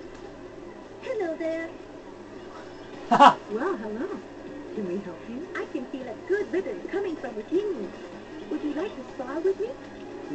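A woman speaks brightly through a television speaker.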